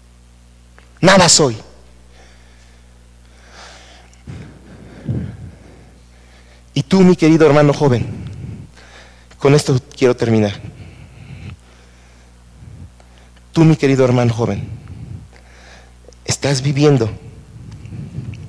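An older man speaks with animation through a microphone, echoing in a large room.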